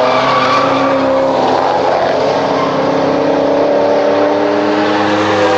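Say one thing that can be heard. A second sports car engine rumbles deeply as it follows behind.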